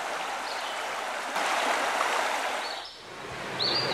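A river flows and splashes over stones.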